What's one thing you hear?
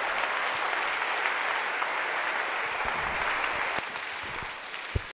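A large crowd claps loudly in a big hall, the applause easing off near the end.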